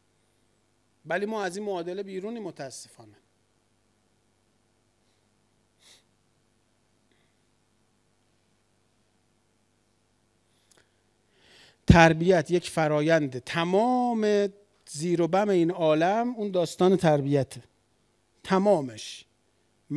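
A middle-aged man speaks with animation into a microphone, pausing at times.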